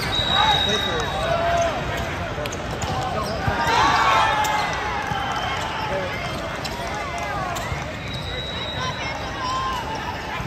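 Players shout and call out across a large echoing hall.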